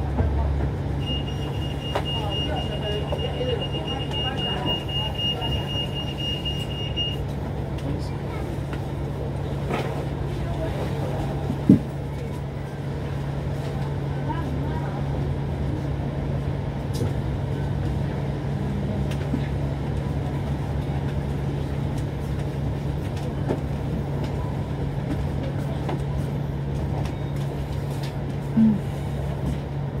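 Cars pass by on the road.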